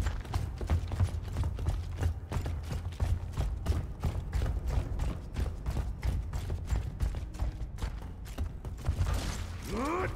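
Heavy boots thud steadily on a hard floor.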